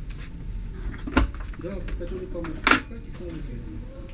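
A lavatory door clicks and swings open.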